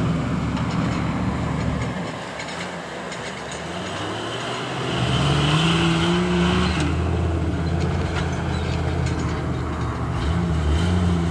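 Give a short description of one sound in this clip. Tyres crunch and grind over dirt and timber.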